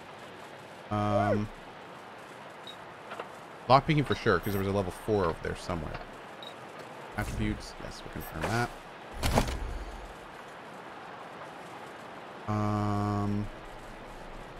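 A game menu beeps with short tones.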